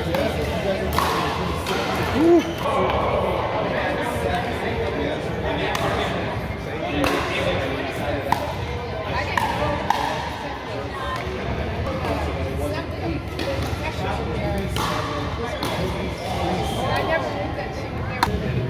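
Paddles strike a plastic ball with sharp pops in a large echoing hall.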